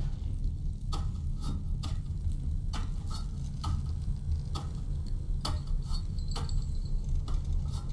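Footsteps clank on metal ladder rungs.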